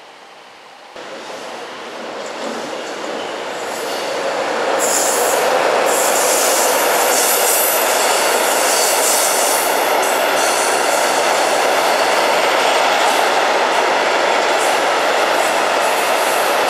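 A freight train approaches and roars past close by.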